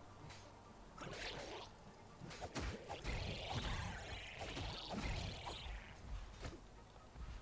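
Blasts and crackling bursts of a video game fight ring out.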